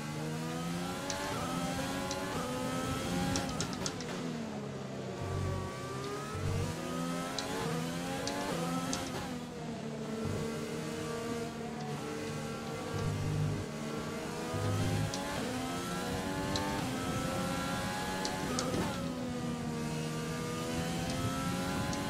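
A racing car engine revs high, dropping in pitch with each gear change and climbing again.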